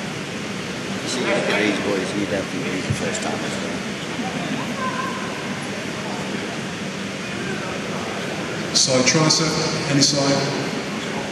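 Audience members shout and cheer in short bursts.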